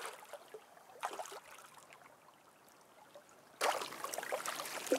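Water sloshes as a man's hands move through it.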